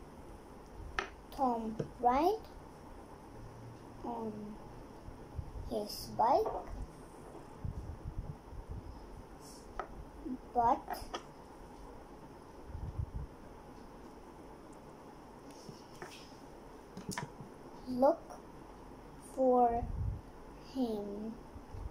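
A young girl reads aloud slowly, word by word, close by.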